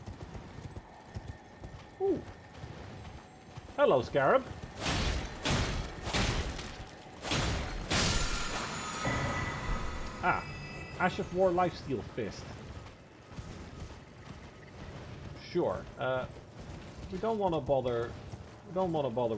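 A horse gallops with thudding hoofbeats.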